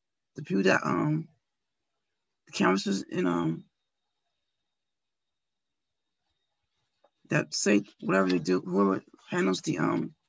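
A woman speaks calmly over an online call, with long pauses.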